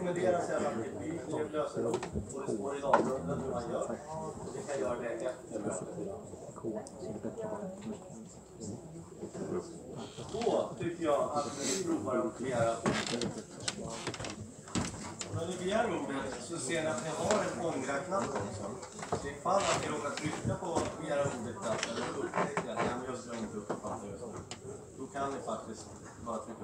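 Many people murmur and chatter quietly nearby.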